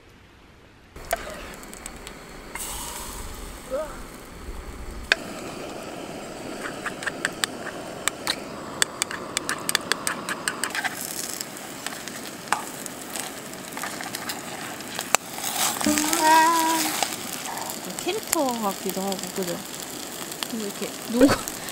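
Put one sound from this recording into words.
Sauce sizzles and crackles in a hot pan.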